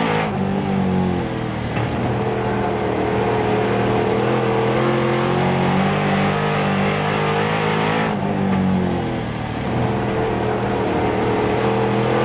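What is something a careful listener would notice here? A race car engine roars loudly from close by, rising and falling as it revs through the turns.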